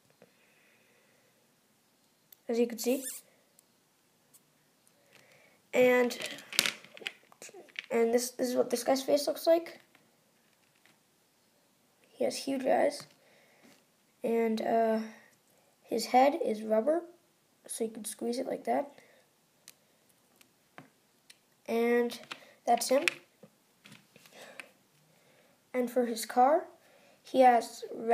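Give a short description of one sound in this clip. Small plastic toy pieces click softly in a hand.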